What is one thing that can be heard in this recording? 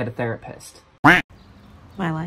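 A young woman speaks anxiously on a phone.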